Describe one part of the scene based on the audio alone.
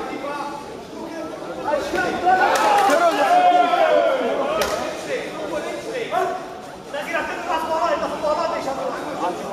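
Spectators shout and call out in a large echoing hall.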